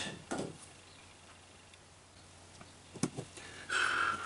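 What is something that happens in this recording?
A metal turntable ring clicks softly as it is shifted on a board.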